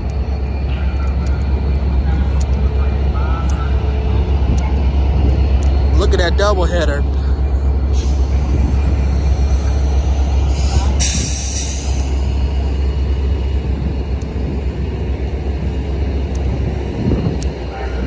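A train's diesel engine idles with a loud, steady low rumble.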